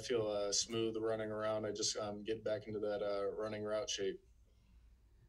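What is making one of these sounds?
A young man speaks calmly and close to a microphone.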